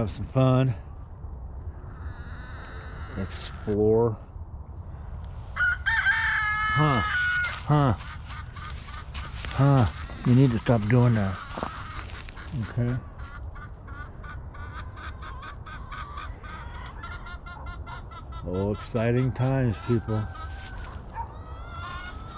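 A dog's paws rustle through dry grass.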